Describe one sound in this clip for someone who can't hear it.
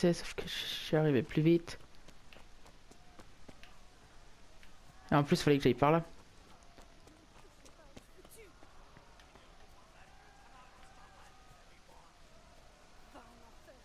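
Footsteps crunch steadily on a dirt path.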